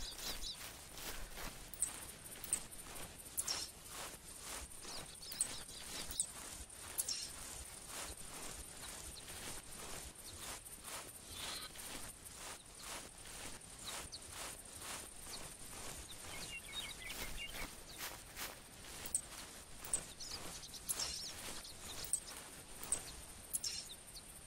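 Footsteps swish steadily through tall grass.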